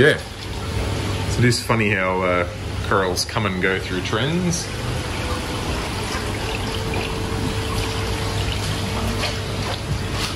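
Water trickles and bubbles steadily in tanks.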